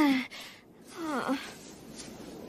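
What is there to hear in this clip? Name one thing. A young woman speaks cheerfully.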